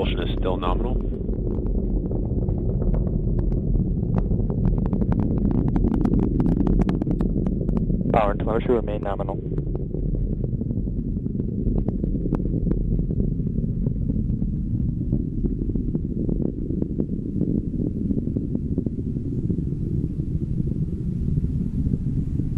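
A rocket engine roars with a low rumble in flight.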